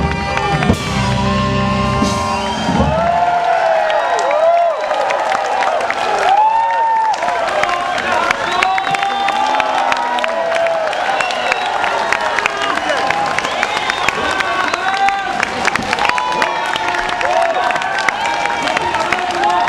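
A crowd cheers and shouts along with the band.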